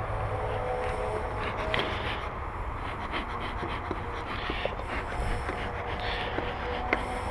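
Honeybees buzz around an open hive.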